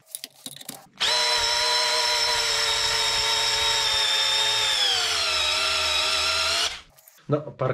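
A cordless drill whirs steadily, then slows slightly as it drives a screw.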